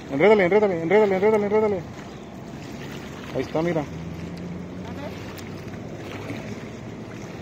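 Small waves lap against a stone shore.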